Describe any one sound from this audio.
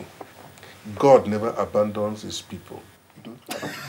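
A man speaks forcefully and close by.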